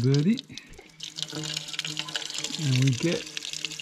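Water runs from a tap into a container.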